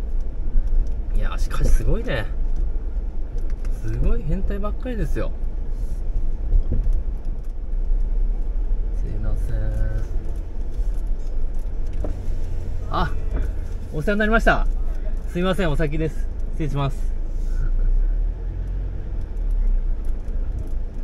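A car engine rumbles low and steady as the car rolls slowly.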